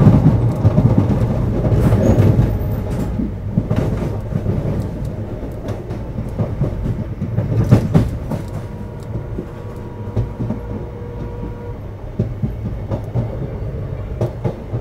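Wind rushes past a moving train.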